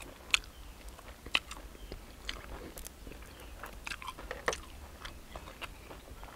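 A man tears grilled meat apart with his fingers close by.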